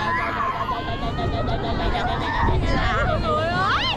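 A young boy laughs loudly close by.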